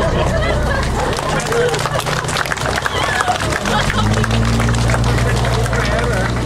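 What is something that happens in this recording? People clap and cheer.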